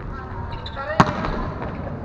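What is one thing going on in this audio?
A volleyball thumps sharply as it is spiked.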